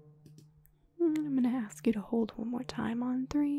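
A young woman speaks calmly into a microphone, close by.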